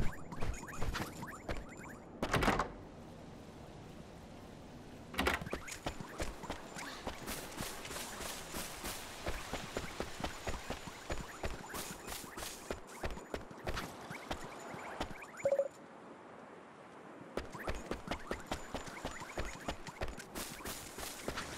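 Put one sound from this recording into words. Quick footsteps patter on stone and grass as a child runs.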